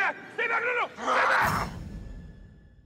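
A creature snarls and screams loudly.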